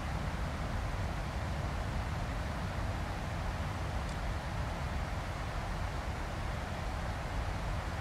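Jet engines roar steadily with a low rumble in an aircraft cabin.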